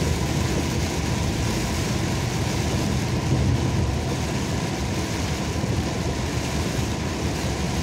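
A truck rushes past close by.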